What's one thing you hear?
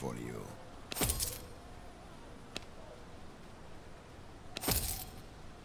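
A short chime sounds as a menu item is chosen.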